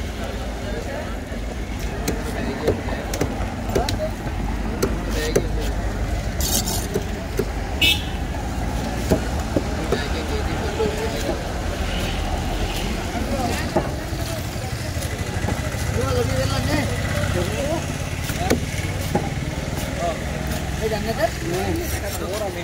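A heavy knife chops through fish on a wooden board with sharp knocks.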